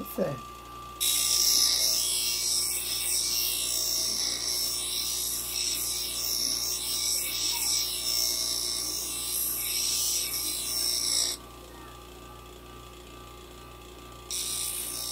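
A grinding wheel grinds metal with a harsh, high hiss.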